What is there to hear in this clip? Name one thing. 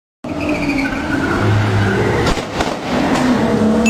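A car splashes heavily into water.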